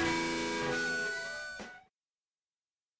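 A rock band plays loud electric guitars and drums, then the music cuts off.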